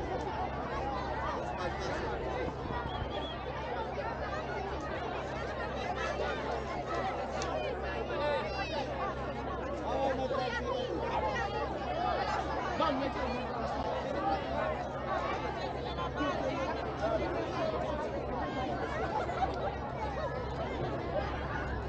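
A crowd of children and adults chatter outdoors at a distance.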